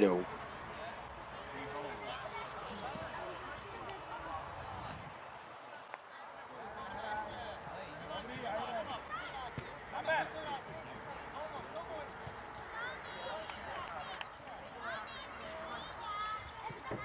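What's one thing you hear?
Young children shout and call out across an open field.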